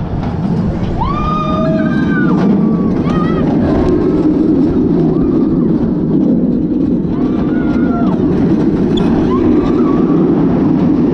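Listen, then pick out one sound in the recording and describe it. Riders scream from up close.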